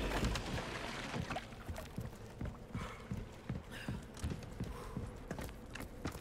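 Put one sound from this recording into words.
Footsteps thud on wooden stairs and boards.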